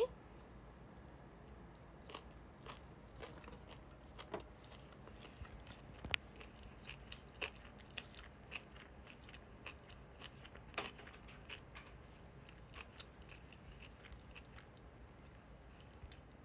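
A young woman chews food with soft clicking noises close by.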